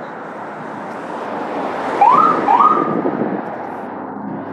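A truck drives past close by.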